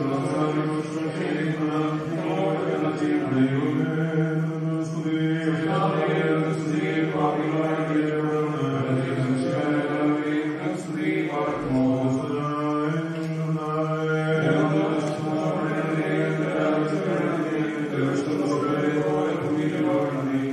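A group of men sings a slow, mournful hymn together.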